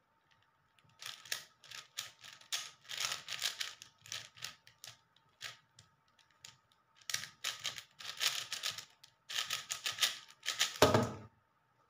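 A plastic puzzle cube clicks and rattles rapidly as it is twisted.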